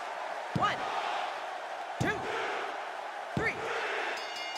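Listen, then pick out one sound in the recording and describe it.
A referee slaps the mat three times in a count.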